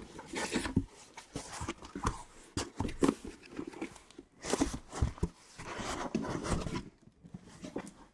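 Cardboard boxes scrape and rustle as they are handled.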